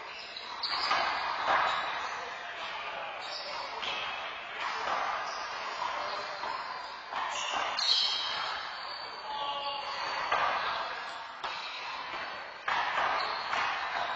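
Sneakers squeak on the floor.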